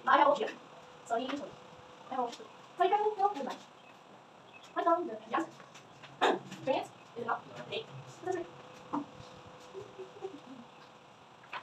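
A young woman speaks in short phrases with pauses, in a room with a slight echo.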